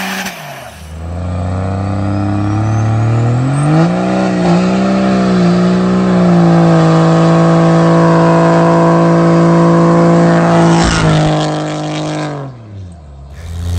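A diesel truck engine roars at full throttle as the truck speeds past.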